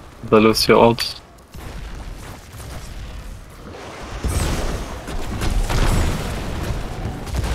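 Video game battle effects clash and whoosh.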